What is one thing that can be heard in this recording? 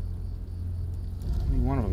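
Tall grass rustles as someone crawls through it.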